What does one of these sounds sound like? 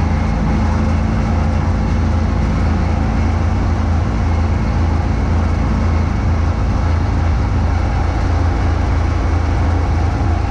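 A snowblower engine roars steadily close by.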